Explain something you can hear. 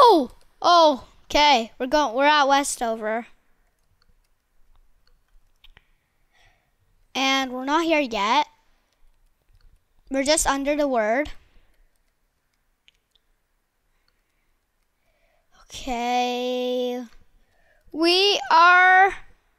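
A young boy talks with animation close to a headset microphone.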